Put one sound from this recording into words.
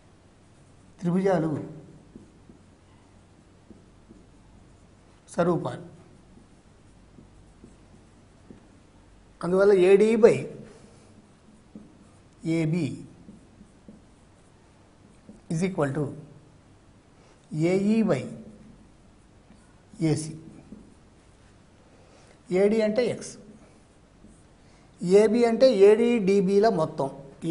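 An elderly man speaks calmly into a microphone in short phrases with pauses.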